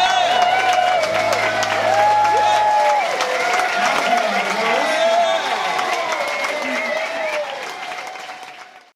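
A band plays along.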